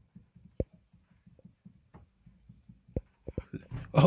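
A hand knocks lightly against a glass tank.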